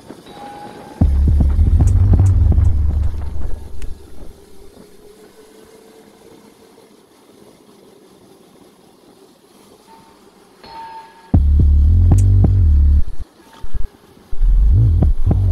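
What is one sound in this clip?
Wind rushes and buffets loudly in gusts.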